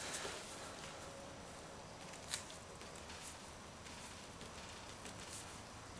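A hand dabs and scrubs at a painted board, making soft scratchy taps.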